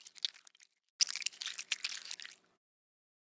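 Soup pours from a ladle into a bowl.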